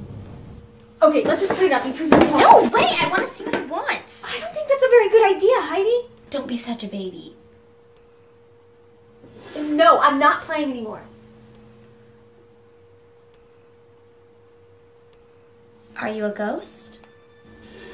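A second young woman speaks calmly and teasingly up close.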